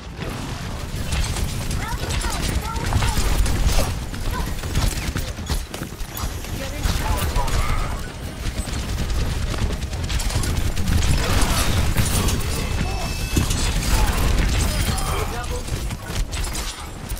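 Loud blasts and explosions boom.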